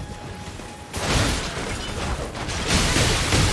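Weapons clash loudly in a fight.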